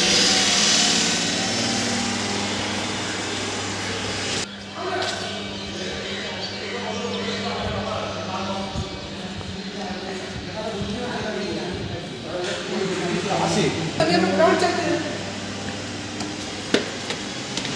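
Footsteps scuff on a concrete floor.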